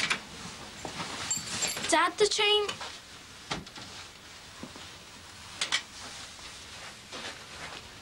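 A young girl speaks quietly and anxiously.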